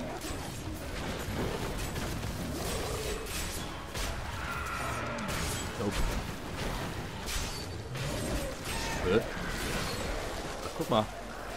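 Monsters growl and shriek as they attack.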